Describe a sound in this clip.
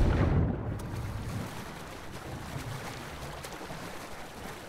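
Water laps and sloshes around a swimmer.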